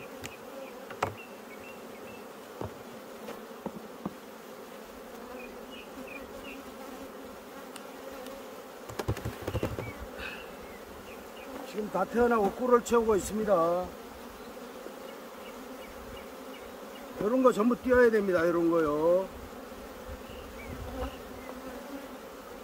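Bees buzz steadily around a hive.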